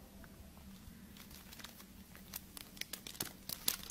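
Fingers press and click on a small plastic frame.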